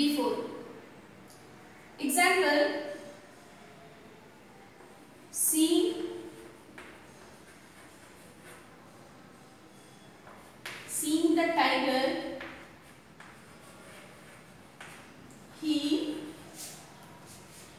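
A young woman speaks slowly and clearly in bursts, close by, with short pauses.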